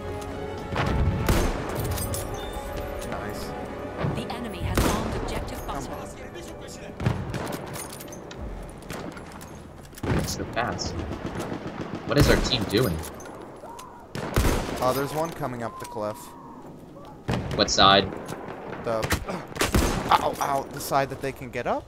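A rifle fires loud, sharp shots several times.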